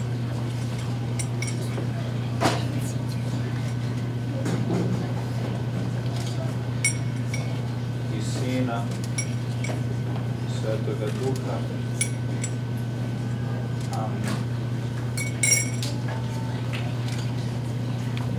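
A man speaks quietly.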